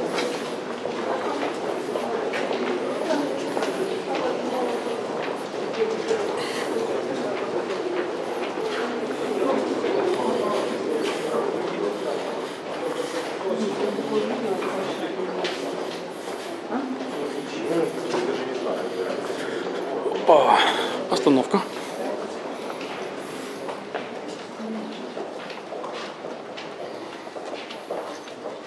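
A crowd of people chatter, echoing in a long tunnel.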